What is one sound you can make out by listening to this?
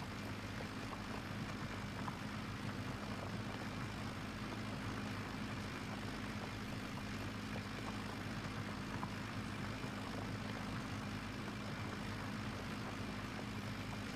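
A tractor engine hums steadily at low revs.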